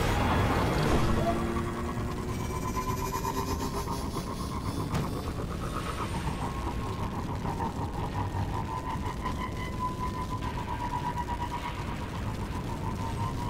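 A hovering vehicle's engine hums steadily with a whining tone.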